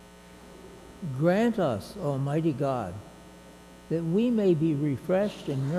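An elderly man chants into a microphone.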